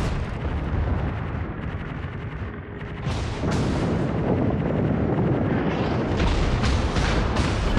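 Shells explode with heavy booms against a ship.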